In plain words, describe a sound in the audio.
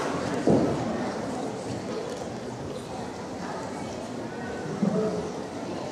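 Feet thump on a sprung floor.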